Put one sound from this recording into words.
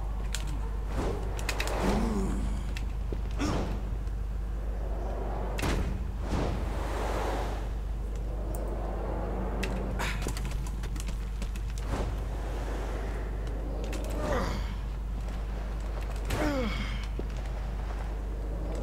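Air rushes loudly past in long whooshes as a figure leaps and falls.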